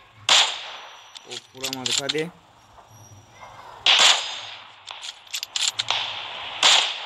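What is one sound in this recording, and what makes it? A rifle bolt clicks and clacks as it is reloaded.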